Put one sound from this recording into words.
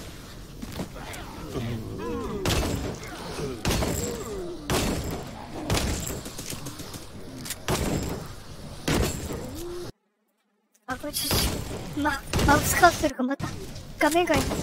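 Magic blasts burst with loud whooshes.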